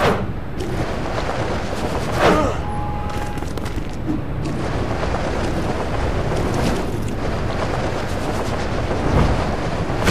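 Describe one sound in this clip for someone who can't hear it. Wind rushes past in a steady roar.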